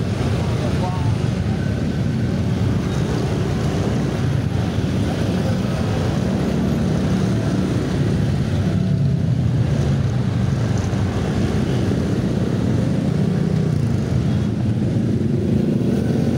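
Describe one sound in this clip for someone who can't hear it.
A motorcycle engine hums steadily up close while riding in slow traffic.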